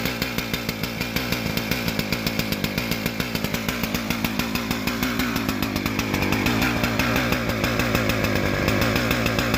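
A two-stroke chainsaw idles, its engine popping unevenly.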